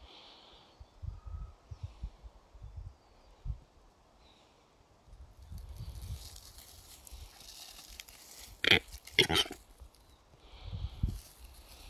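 Wind rustles and buffets close by.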